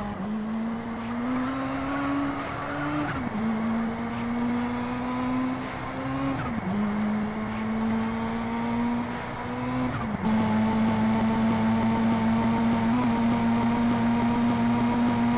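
A car engine revs steadily, rising in pitch and dropping sharply with each gear change.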